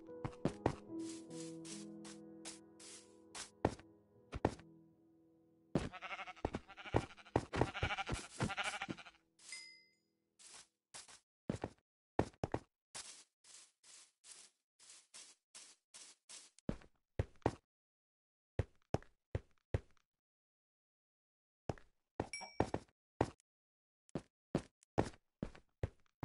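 Footsteps tramp over grass and stone in a steady rhythm.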